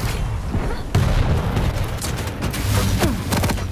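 A futuristic gun fires with crackling electric bursts.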